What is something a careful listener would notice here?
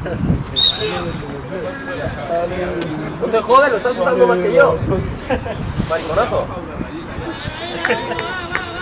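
Young men call out to each other at a distance outdoors.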